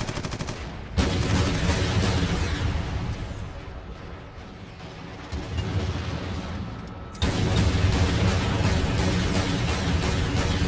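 Gunfire bursts loudly in rapid shots.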